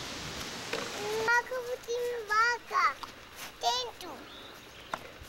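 A young child talks and calls out in a high voice close by.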